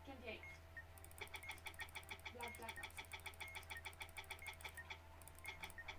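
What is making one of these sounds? A toy clock ticks rapidly as its hands spin forward.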